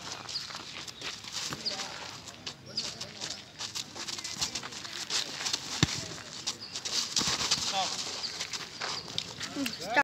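Boxing gloves thump against each other in quick punches outdoors.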